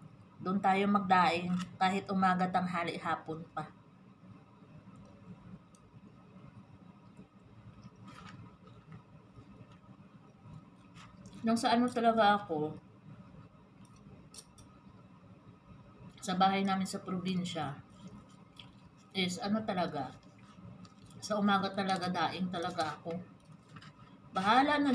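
Cutlery clinks against a plate.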